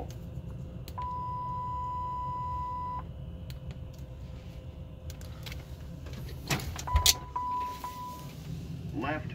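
A cockpit warning tone sounds steadily for a few seconds.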